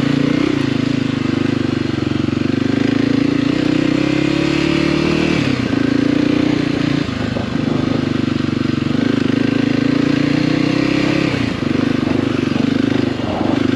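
A motorcycle engine drones loudly up close, revving up and easing off.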